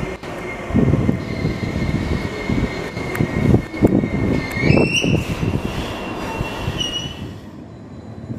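Train brakes squeal steadily, then rise in pitch as the train stops.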